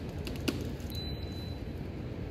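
A card reader beeps.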